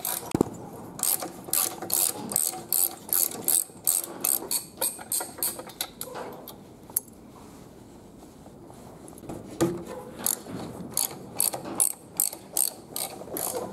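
A ratchet wrench clicks rapidly against an engine bolt.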